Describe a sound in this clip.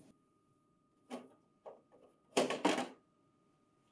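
A metal panel clatters as it is lifted out.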